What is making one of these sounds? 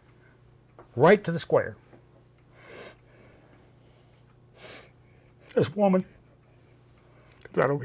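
An elderly man speaks slowly and haltingly, close to a microphone.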